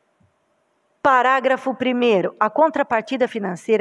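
A woman speaks clearly and loudly through a microphone.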